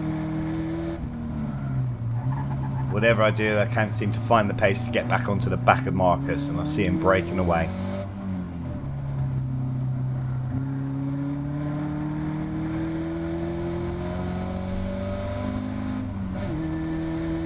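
A car engine drops sharply in pitch as gears change.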